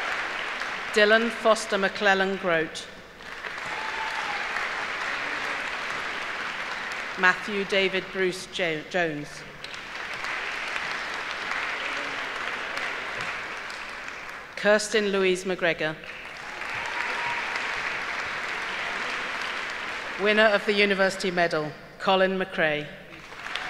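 An older woman reads out names through a microphone in a large hall.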